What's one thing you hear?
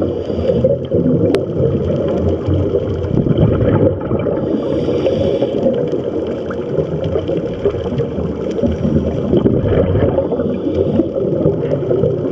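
Bubbles from a scuba diver's exhalation gurgle and rush upward underwater.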